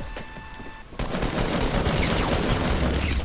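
A weapon fires a loud, rushing blast.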